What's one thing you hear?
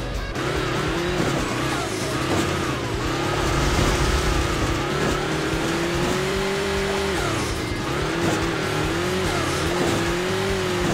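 A game car's engine hums and revs up and down.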